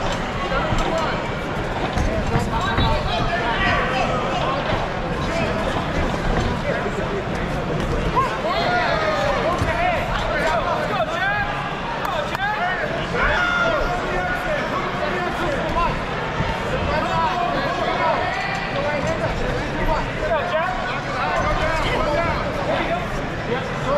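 A crowd cheers and shouts loudly in a large echoing hall.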